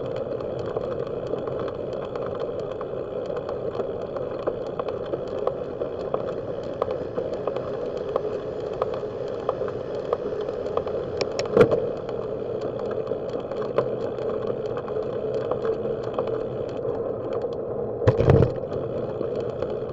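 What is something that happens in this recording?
A bicycle ticks and rattles as it rolls along the road.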